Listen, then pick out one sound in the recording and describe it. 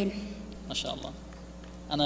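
A young boy speaks into a microphone.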